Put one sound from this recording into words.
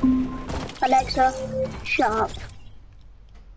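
Bright electronic game chimes ring out and then stop.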